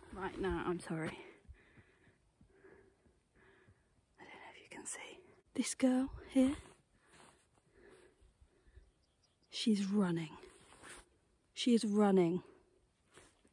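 A young woman talks calmly and close to the microphone, outdoors.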